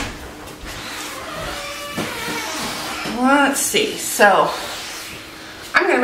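A woman wipes a countertop with a cloth.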